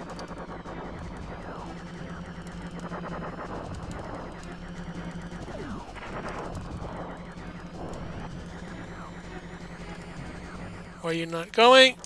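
Video game laser shots zap rapidly, over and over.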